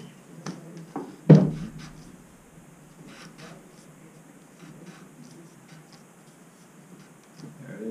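Hands knock and tap against a metal pipe.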